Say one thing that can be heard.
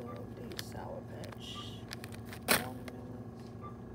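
A plastic snack bag crinkles as it is handled.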